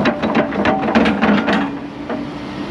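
Dirt and rocks tumble from an excavator bucket.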